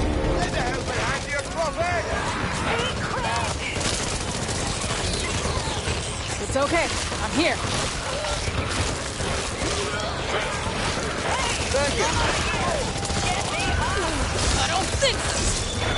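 Zombies snarl and groan close by.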